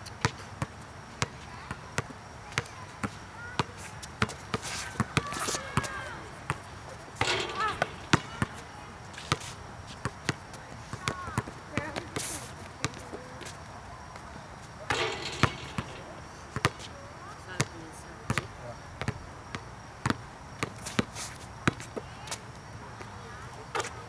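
A basketball bounces repeatedly on an outdoor court.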